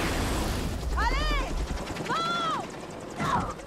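A woman shouts in alarm.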